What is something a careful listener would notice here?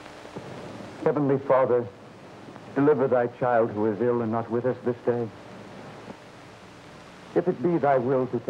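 A man preaches loudly and with force.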